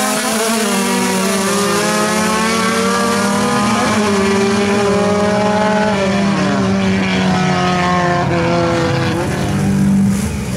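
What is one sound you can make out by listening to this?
Car engines roar as two cars accelerate away, their pitch rising through the gears.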